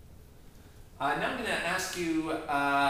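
A man speaks calmly and clearly, close by, in a slightly echoing room.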